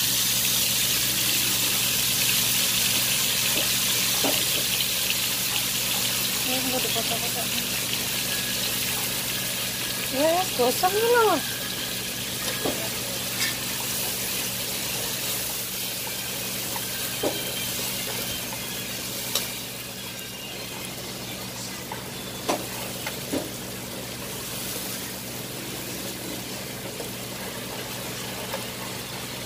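Oil sizzles loudly in a hot pan.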